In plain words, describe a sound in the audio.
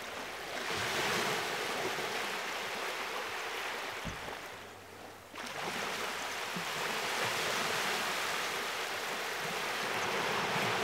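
Small waves wash and lap close by.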